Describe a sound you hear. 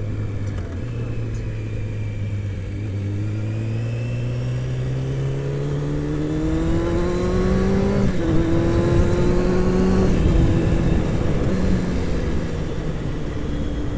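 A motorcycle engine hums and rises in pitch as it speeds up, then shifts gear.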